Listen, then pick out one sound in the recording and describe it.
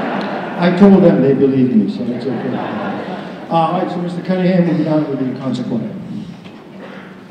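An elderly man speaks into a microphone with animation, heard through loudspeakers in a large hall.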